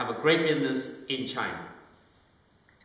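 A middle-aged man speaks calmly into a microphone, close by.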